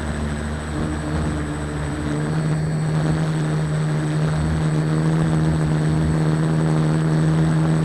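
An aircraft engine drones steadily with a low hum.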